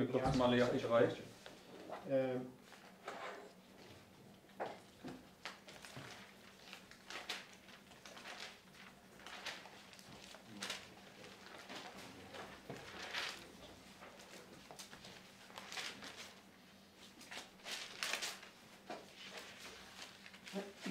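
Paper pages rustle as a book is leafed through.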